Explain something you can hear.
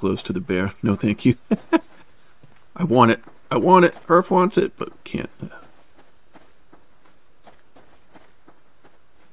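Footsteps swish through grass.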